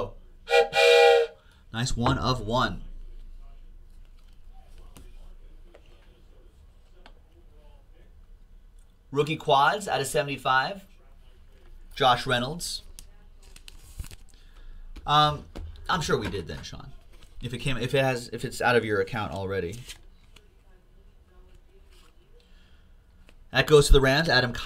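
Plastic card sleeves rustle and click in hands.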